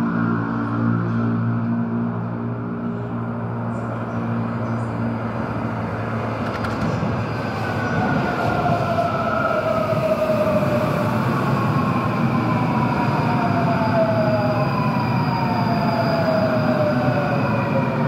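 An oncoming train approaches and roars past close by.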